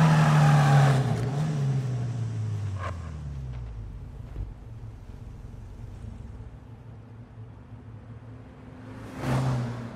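A car engine winds down and idles with a low rumble.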